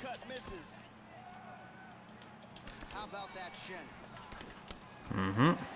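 Punches and kicks land on a fighter's body with sharp thuds.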